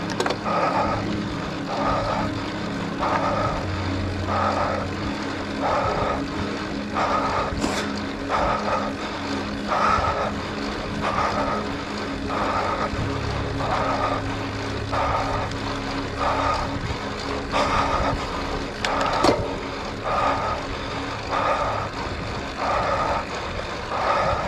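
Road bike tyres hiss on wet asphalt.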